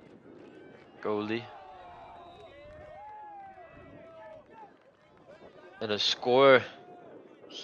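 Young men shout loudly outdoors at a distance.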